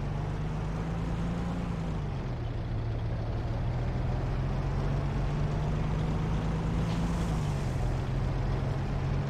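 A tank engine rumbles steadily, its pitch dipping and rising.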